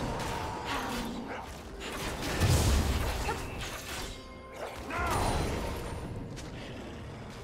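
Spell effects whoosh and crackle in a fast fight.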